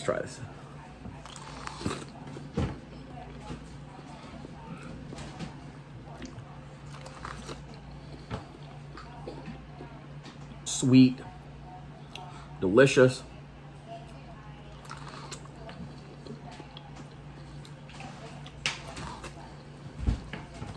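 A man bites into corn on the cob with a crunch.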